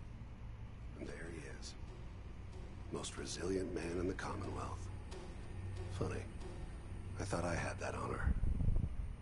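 A man speaks calmly with a mocking tone.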